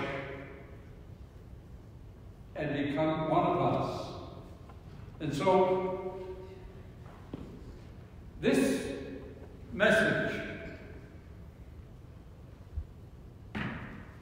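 An elderly man speaks slowly and solemnly through a microphone, with pauses, in a large echoing hall.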